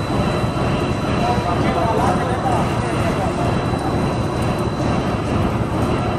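Machinery rumbles steadily and loudly.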